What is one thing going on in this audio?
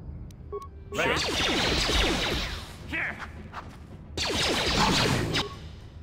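Blaster shots crackle during a close fight.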